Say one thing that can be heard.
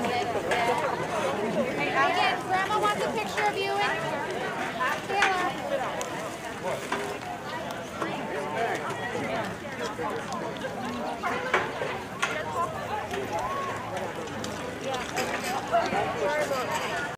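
A crowd of young people chatters and calls out outdoors.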